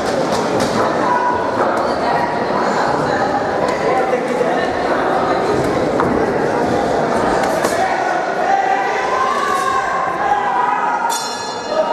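Boxing gloves thud against each other in quick punches.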